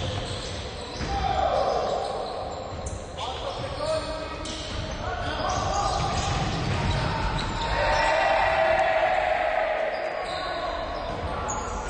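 Young players shout to each other across the court.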